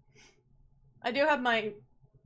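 A young woman speaks with animation into a close microphone.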